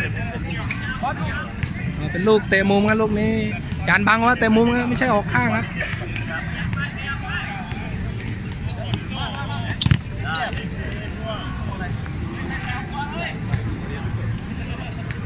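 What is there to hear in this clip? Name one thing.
Several men shout and call out to each other loudly, close by.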